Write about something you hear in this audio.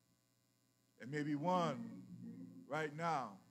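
A man preaches with feeling through a microphone in an echoing hall.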